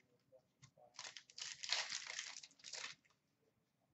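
A foil card wrapper crinkles and tears open.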